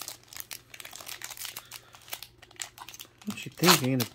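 A paper wrapper rips as it is torn open.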